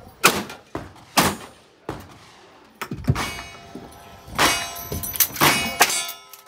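Bullets clang against steel targets in the distance.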